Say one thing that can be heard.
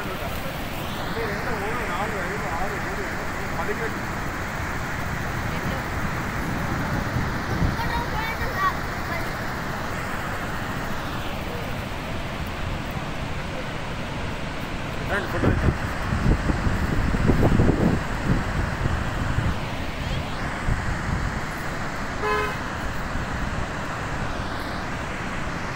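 Water thunders through open spillway gates and roars steadily.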